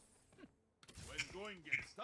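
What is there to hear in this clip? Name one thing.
Magic spells burst and crackle in a battle.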